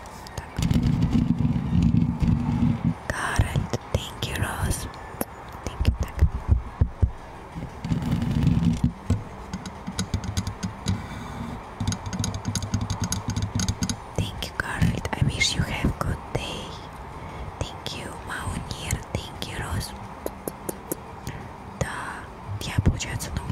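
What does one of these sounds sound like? A young woman whispers softly into a microphone up close.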